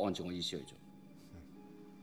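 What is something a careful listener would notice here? A man speaks calmly on a phone.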